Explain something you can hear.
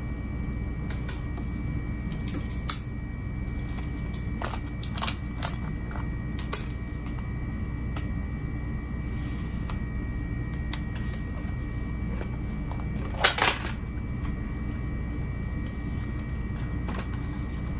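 Small clicks and taps sound as things are moved around.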